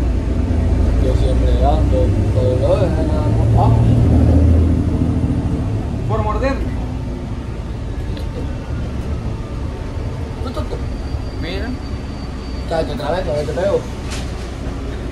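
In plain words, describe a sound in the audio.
Young men talk casually close by.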